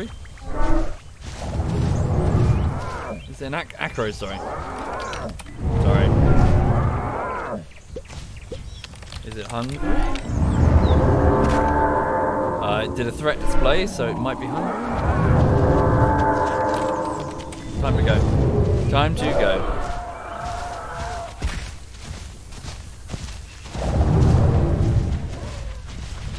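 Heavy footsteps thud on grass as a large animal walks.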